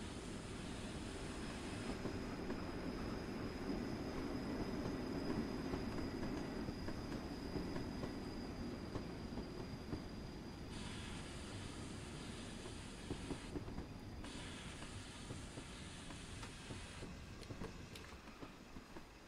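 A steam locomotive rumbles steadily along the track.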